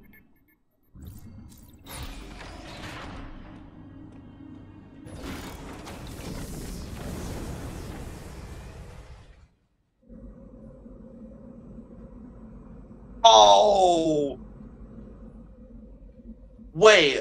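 Low rumbling and whooshing video game sound effects play.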